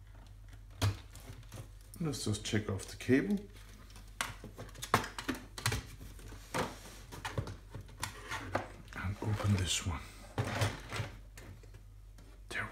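Plastic casing clicks and knocks as hands lift it open.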